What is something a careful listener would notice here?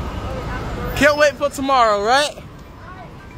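A woman shouts excitedly close by.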